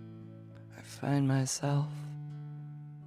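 A man sings a short phrase into a microphone.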